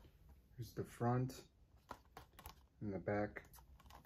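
A plastic disc case clicks and rattles in a hand.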